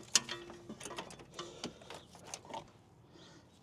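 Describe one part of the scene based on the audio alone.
Metal parts clink and knock close by.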